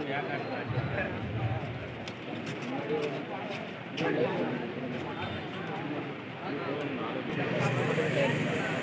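A large crowd cheers and chatters loudly outdoors.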